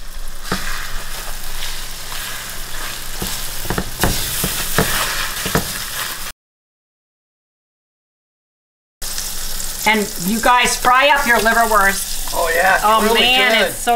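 A spatula scrapes against a frying pan.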